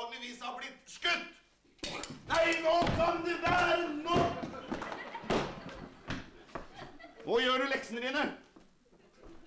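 A man speaks loudly and theatrically in a large hall.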